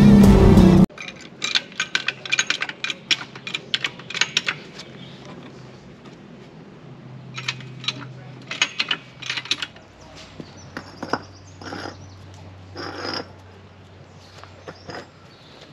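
A hand tool clicks and taps against a car's wheel.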